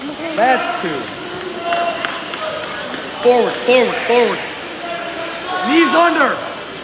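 A murmur of a crowd carries through a large echoing hall.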